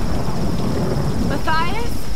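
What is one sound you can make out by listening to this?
A fire crackles.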